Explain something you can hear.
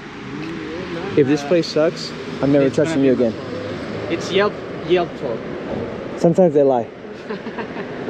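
A man speaks casually close by.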